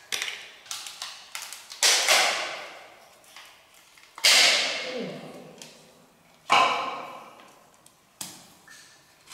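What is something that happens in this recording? Large shells clatter and knock against each other on rocky ground.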